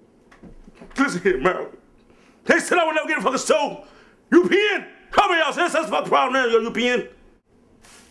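A middle-aged man speaks with strained emotion close by.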